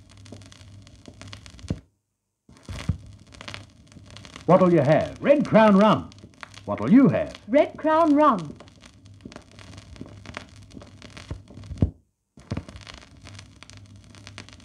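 A turntable's tonearm clicks and knocks as a hand moves it.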